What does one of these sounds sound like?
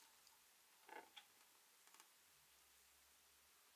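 A soft jelly sweet taps down onto a table.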